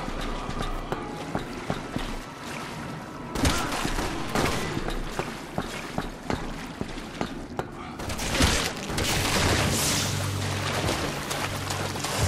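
Footsteps clank on a metal grating.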